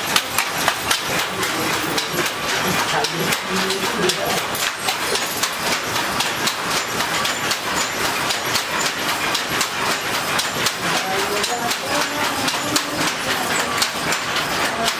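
A handloom clacks and thumps in a fast, steady rhythm.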